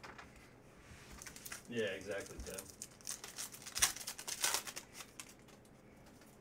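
A foil card wrapper crinkles as it is torn open.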